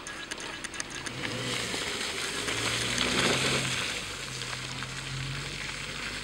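Tyres squelch and splash through mud.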